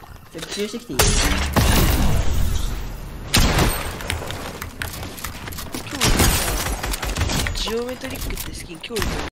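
Gunshots crack loudly in quick bursts.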